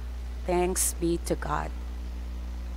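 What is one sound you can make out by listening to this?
A middle-aged woman speaks briefly into a microphone.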